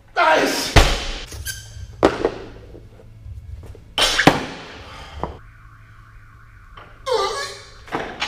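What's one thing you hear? Metal weight plates clank as a man handles a barbell.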